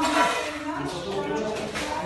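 A broom scrapes across the floor.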